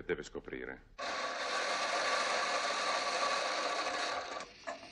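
A coffee grinder whirs loudly.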